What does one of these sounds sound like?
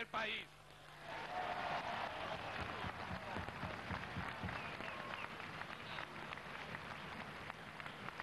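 A huge crowd roars and cheers in a vast open stadium.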